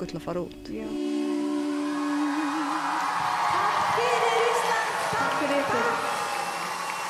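Electric guitars play a song.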